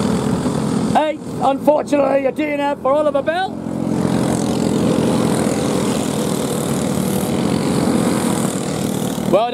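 Small kart engines buzz loudly as karts race by.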